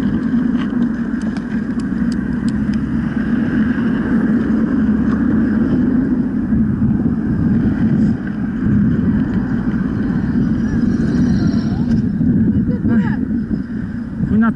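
Bicycle tyres roll over a rough road.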